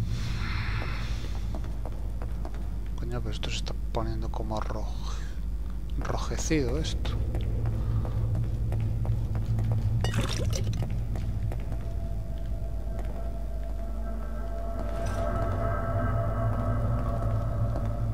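Footsteps thud on a creaking wooden floor.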